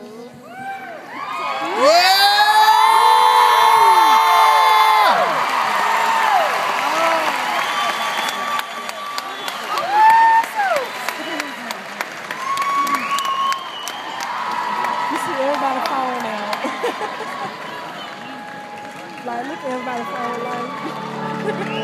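A large crowd cheers and sings along.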